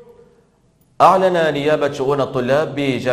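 A young man speaks clearly and steadily into a microphone.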